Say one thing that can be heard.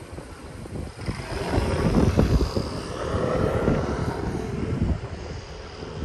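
A motor scooter engine hums as it passes close by.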